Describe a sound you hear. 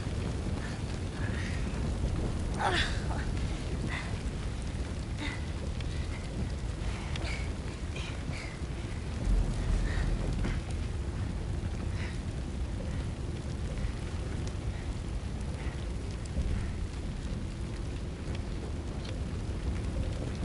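A creature's heavy limbs thump and scrape across a floor.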